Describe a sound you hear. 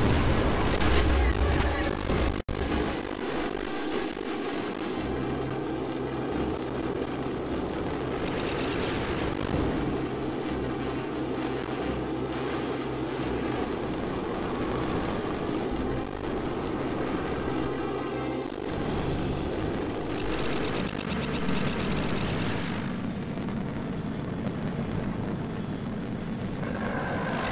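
A spaceship engine roars.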